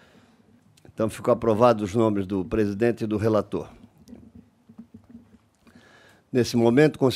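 A middle-aged man speaks calmly into a microphone, reading out.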